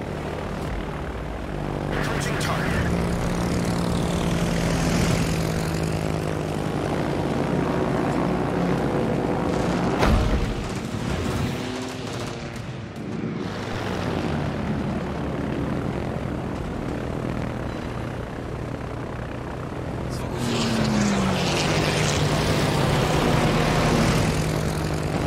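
Propeller warplanes drone in formation.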